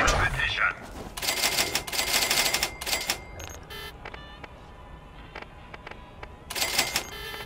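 Menu beeps and chimes sound in quick bursts.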